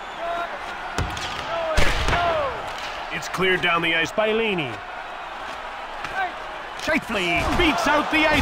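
A hockey stick strikes a puck with a sharp clack.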